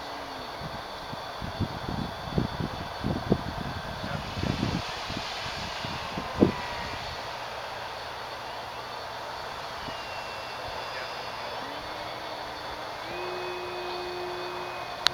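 The electric motor of a radio-controlled model airplane whines high overhead, its pitch rising and falling.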